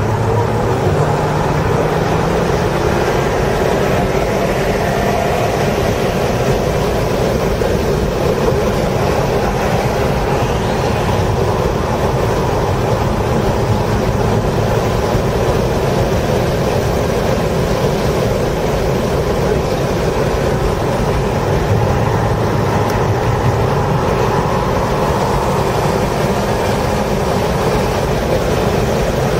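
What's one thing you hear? Tyres rumble over the track surface.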